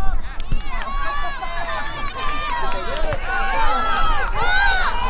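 Young women shout to each other across an open playing field.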